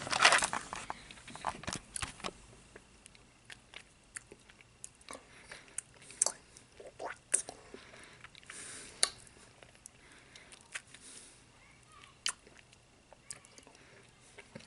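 A man sucks on a lollipop with soft wet smacks.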